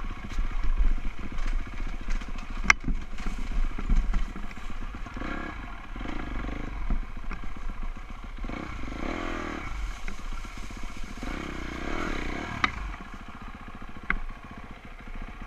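A dirt bike engine revs and sputters up close.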